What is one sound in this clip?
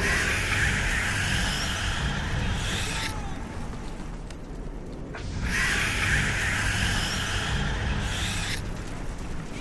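A loud crackling energy blast roars in a video game.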